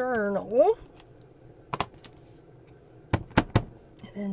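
Paper rustles and taps as it is handled.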